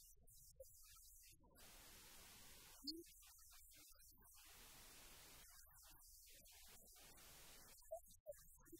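A middle-aged woman speaks calmly and clearly through a microphone in an echoing hall.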